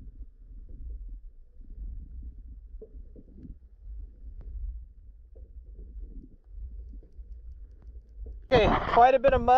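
Water rumbles low and muffled underwater.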